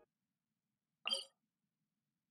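A sharp interface click sounds once.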